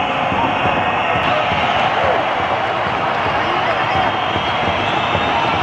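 A large crowd cheers and chants loudly in a big echoing arena.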